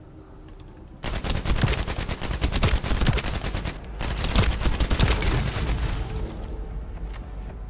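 Rapid gunfire bursts loudly in a video game.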